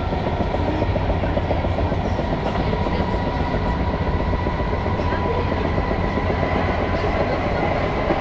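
A vehicle rumbles steadily as it moves along.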